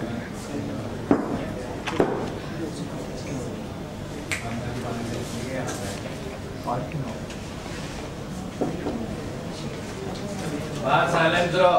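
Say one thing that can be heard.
Several people talk in the background of a room.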